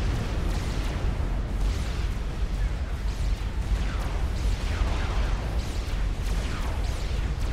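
Laser weapons zap in rapid bursts.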